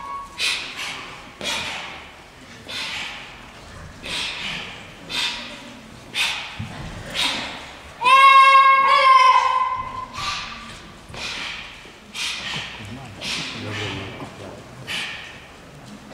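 Feet stamp and slap on a hard floor, echoing through a large hall.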